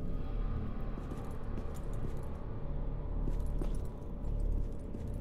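Footsteps tap on stone in an echoing passage.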